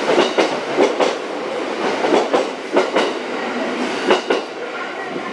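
A train rushes past close by, its wheels clattering.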